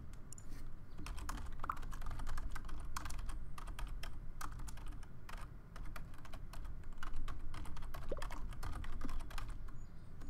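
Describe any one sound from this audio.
Keys click quickly as someone types.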